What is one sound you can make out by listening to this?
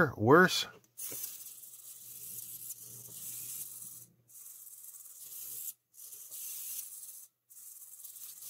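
A small electric motor buzzes and whirs in short bursts.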